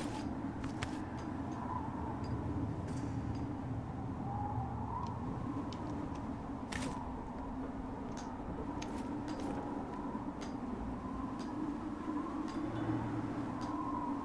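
Hands and boots scrape and knock on stone while climbing.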